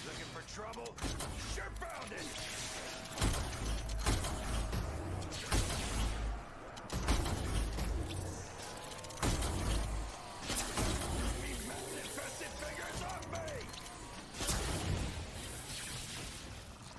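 Energy weapons fire with sharp crackling blasts.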